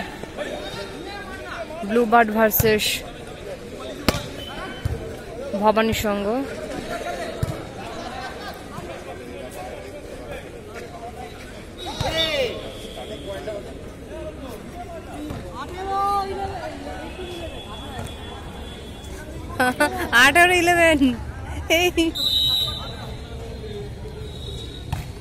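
A crowd of onlookers chatters in the background.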